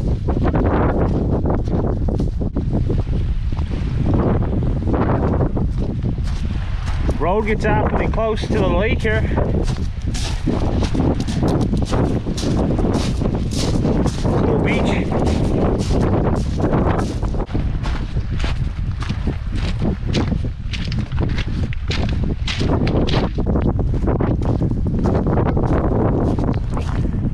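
Strong wind buffets the microphone throughout.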